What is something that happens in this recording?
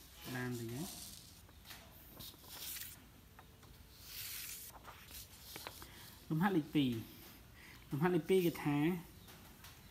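Paper rustles as sheets are shifted.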